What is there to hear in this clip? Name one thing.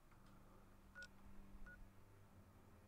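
A device clicks and beeps softly.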